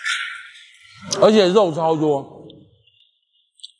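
A young man makes a drawn-out voiced sound, close by.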